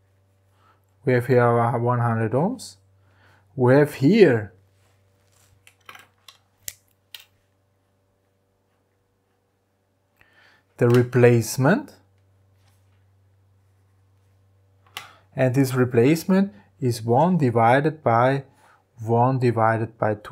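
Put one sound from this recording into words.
A man speaks calmly and clearly into a close microphone, explaining.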